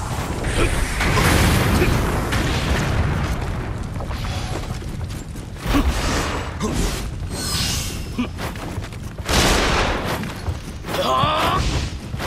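Flames roar and crackle steadily.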